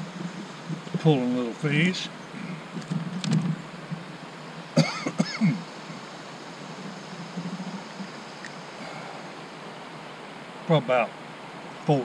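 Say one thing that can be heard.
A middle-aged man talks outdoors, close by.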